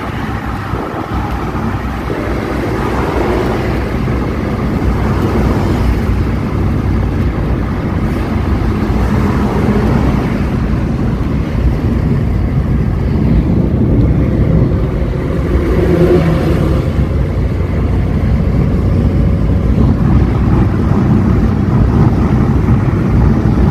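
A small petrol van cruises at highway speed, heard from inside the cabin.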